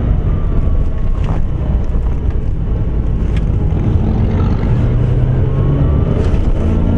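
A car engine hums and rumbles steadily from inside the cabin.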